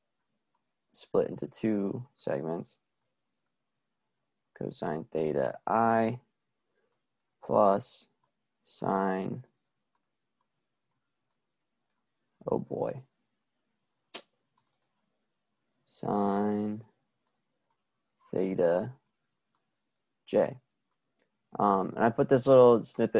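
A young man talks calmly into a close microphone, in short phrases with pauses.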